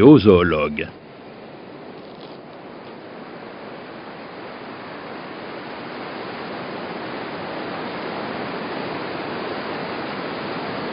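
A mountain stream rushes over rocks in the distance.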